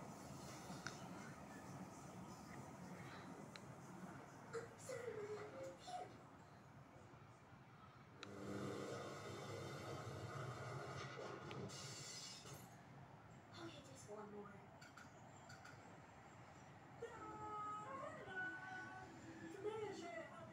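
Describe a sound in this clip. A television plays a cartoon soundtrack across the room.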